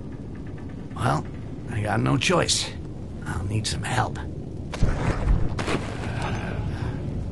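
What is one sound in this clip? A man speaks casually into a nearby microphone.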